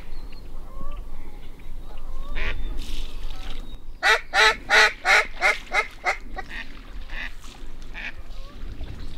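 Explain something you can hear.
Wind rustles through tall reeds outdoors.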